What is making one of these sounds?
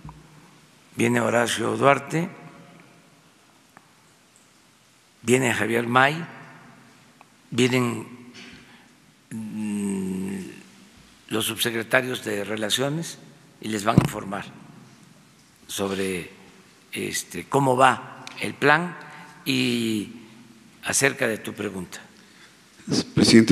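An elderly man speaks slowly into a microphone in a large echoing hall, with long pauses.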